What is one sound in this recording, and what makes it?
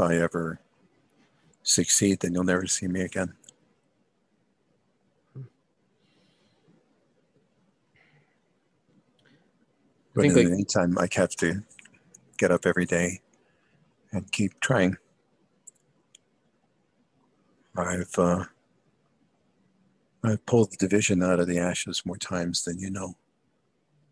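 A young man talks casually over an online call, heard through a headset microphone.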